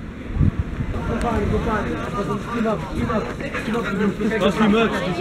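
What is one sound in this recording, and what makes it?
A crowd of teenagers chatter and talk over one another close by.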